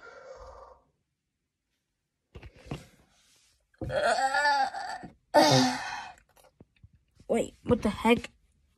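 A young woman speaks and exclaims in short bursts close to the microphone.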